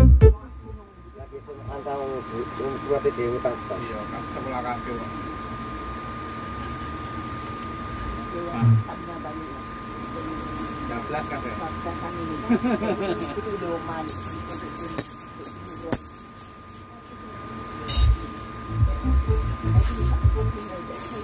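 Music plays through loudspeakers across an open field.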